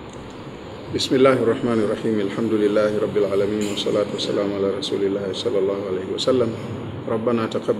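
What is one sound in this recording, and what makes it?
An older man chants a prayer loudly and melodically through a microphone.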